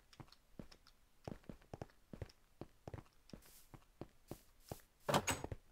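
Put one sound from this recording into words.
Footsteps tap lightly on stone.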